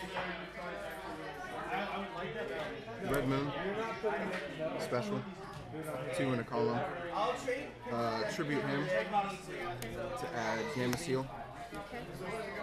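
A young man talks calmly and steadily nearby.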